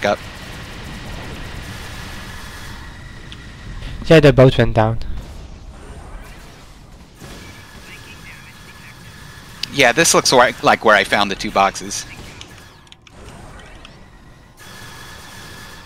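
Laser guns fire in short bursts.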